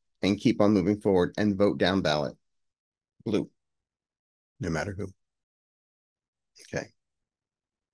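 A middle-aged man speaks with animation, close to a microphone, in short bursts with pauses.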